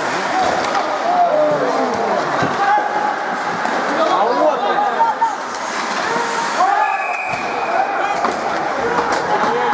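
Young men shout and call out across an echoing rink.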